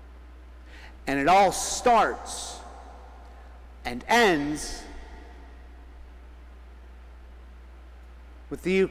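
A man chants through a microphone, echoing in a large hall.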